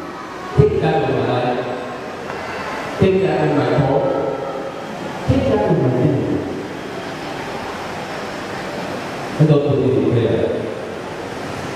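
A young man speaks with emphasis into a microphone, heard through loudspeakers in a reverberant hall.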